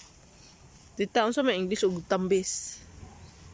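A woman speaks with animation nearby.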